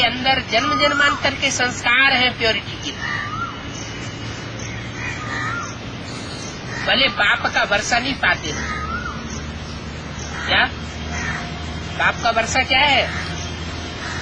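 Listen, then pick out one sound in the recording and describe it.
An elderly man speaks calmly and close by, in bursts with pauses.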